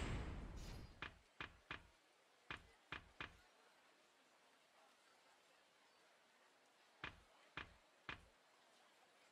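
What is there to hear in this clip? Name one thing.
Short menu clicks tick as a selection moves from item to item.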